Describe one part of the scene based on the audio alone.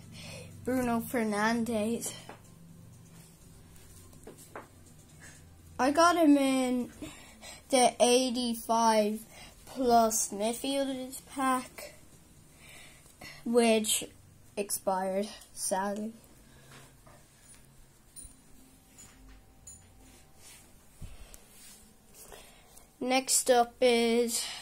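A young boy talks with animation close by, in short bursts with pauses.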